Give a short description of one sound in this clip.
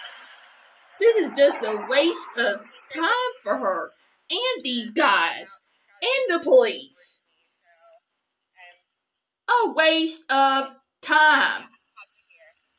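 A woman speaks agitatedly nearby.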